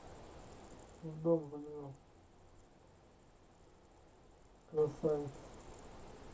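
A man speaks briefly into a microphone, close by.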